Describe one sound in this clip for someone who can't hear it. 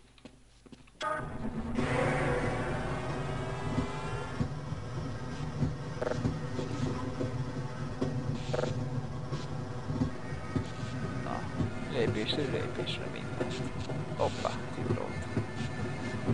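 A rail cart rumbles steadily along its track.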